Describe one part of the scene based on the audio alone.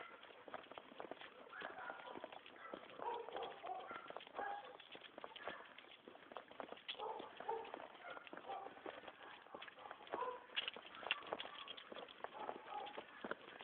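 A large dog pants.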